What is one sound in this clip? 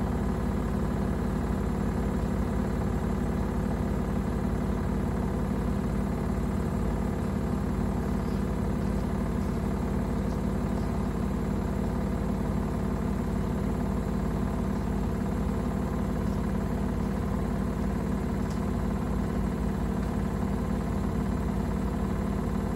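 A washing machine drum spins with a steady low hum.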